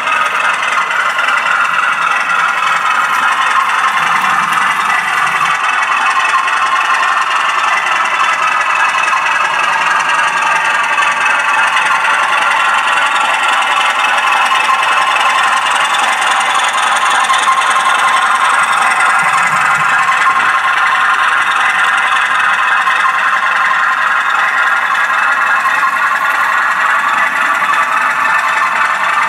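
A model train hums and clatters steadily along its track.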